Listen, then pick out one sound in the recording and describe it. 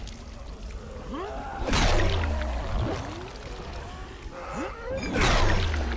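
Zombies snarl and groan nearby.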